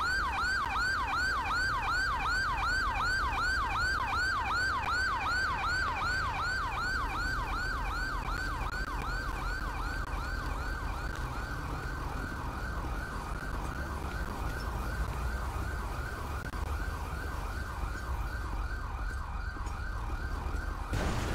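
An ambulance siren wails in a fast, repeating yelp and slowly fades into the distance.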